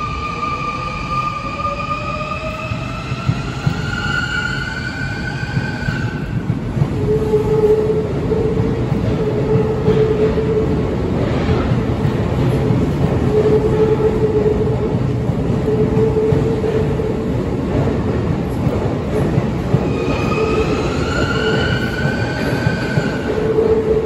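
An electric train's motor whines, rising in pitch as it speeds up.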